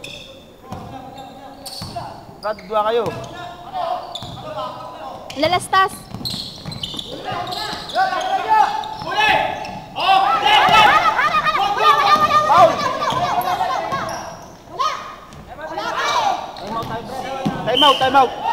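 Sneakers squeak sharply on a hardwood floor in a large echoing hall.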